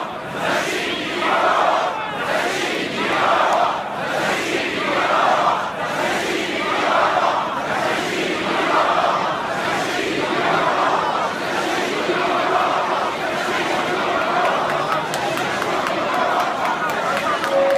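A large crowd chants loudly in unison, in a steady rhythm outdoors.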